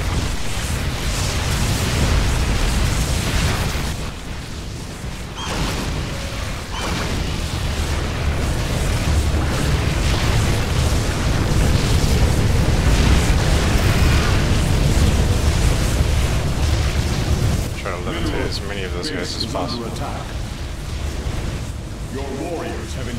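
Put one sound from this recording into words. Game weapons fire and energy blasts crackle in a loud, rumbling battle.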